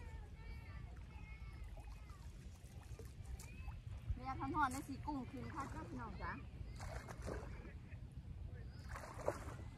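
Water splashes as a net is dipped and lifted.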